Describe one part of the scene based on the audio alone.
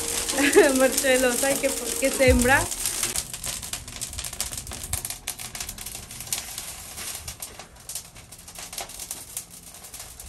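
A wood fire crackles and roars in an oven.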